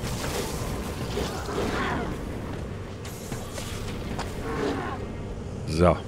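Magic ice bolts whoosh and crackle in bursts.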